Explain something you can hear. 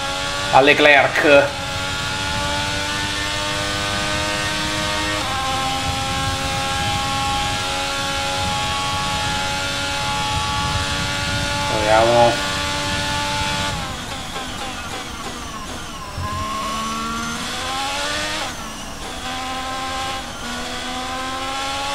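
A racing car engine whines at high revs, rising through the gears and dropping sharply when braking.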